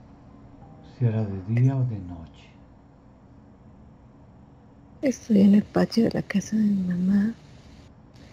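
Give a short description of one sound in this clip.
A woman speaks with animation over an online call.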